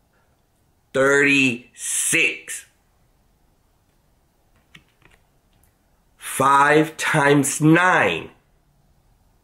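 A middle-aged man speaks cheerfully and close up, in short bursts.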